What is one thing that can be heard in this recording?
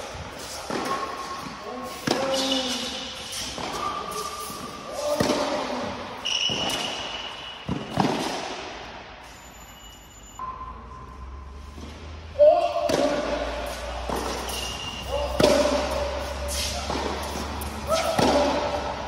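A tennis racket strikes a ball with sharp pops that echo through a large hall.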